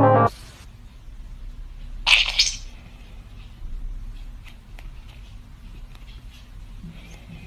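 A small phone speaker plays short electronic game sounds.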